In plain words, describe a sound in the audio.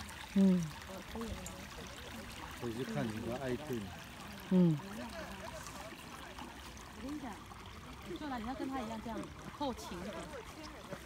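Adults talk casually nearby outdoors.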